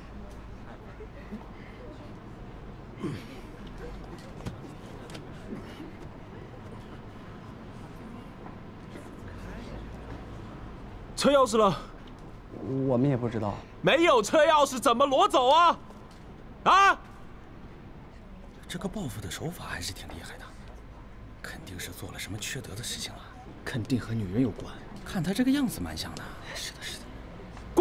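A man sniffles into a tissue.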